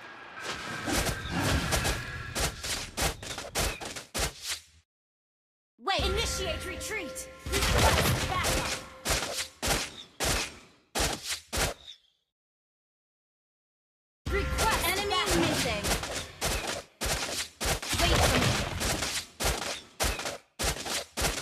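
Video game spell effects whoosh and crackle in quick bursts.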